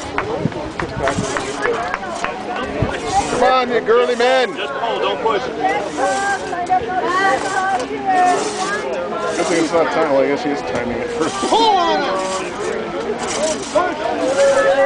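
A crosscut saw rasps rhythmically back and forth through a log outdoors.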